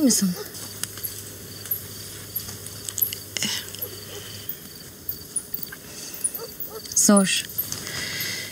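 A woman speaks quietly nearby.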